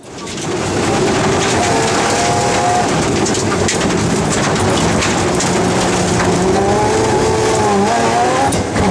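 Tyres hiss and crunch over snow and gravel.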